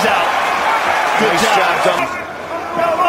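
A large crowd cheers and roars loudly.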